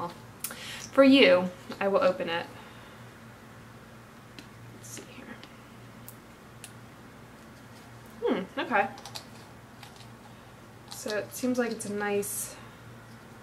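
A young woman speaks calmly into a nearby microphone, in short bursts with pauses.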